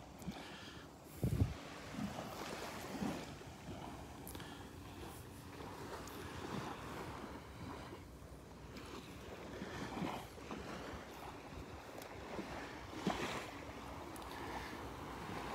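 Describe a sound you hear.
Shallow water laps and splashes close by.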